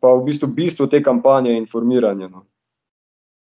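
A young man speaks calmly through an online call.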